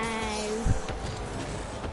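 A game car knocks a ball with a thud.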